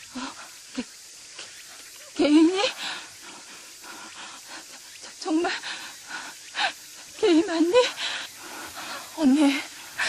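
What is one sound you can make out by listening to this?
A second young woman answers close by in a tearful, pleading voice.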